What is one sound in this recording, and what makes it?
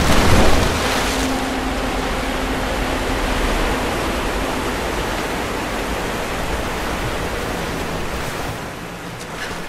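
Water sloshes around a swimmer moving through it.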